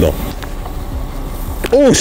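A pump sprayer hisses out a fine mist.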